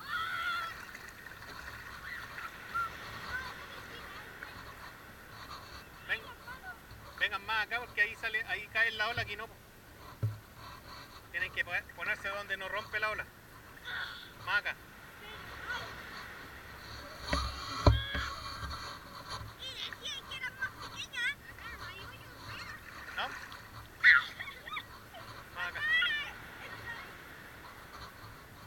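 Small waves lap and splash close by.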